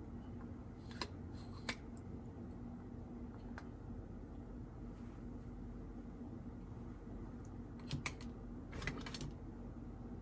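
Plastic toy pieces click and clack as they are handled.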